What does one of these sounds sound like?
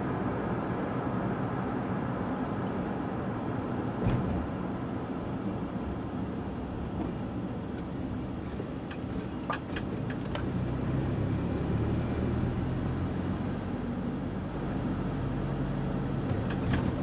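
Tyres roll along the road with a steady rumble.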